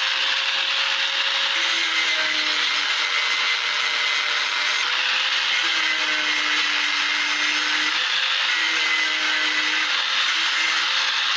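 An angle grinder whines steadily as it cuts through steel.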